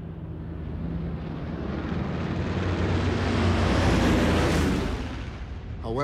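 Propeller aircraft engines drone steadily and swell louder.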